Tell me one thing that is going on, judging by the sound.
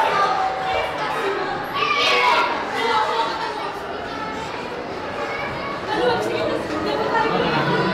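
Several young men talk and chatter nearby in an echoing stairwell.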